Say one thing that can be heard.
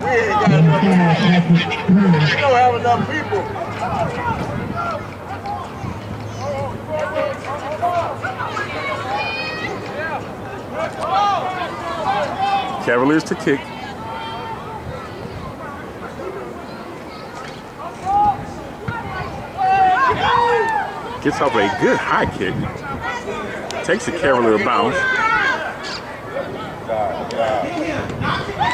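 Young men shout and cheer nearby outdoors.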